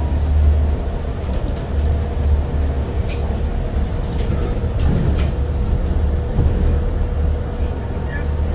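A car drives along a street with a steady low rumble of engine and tyres.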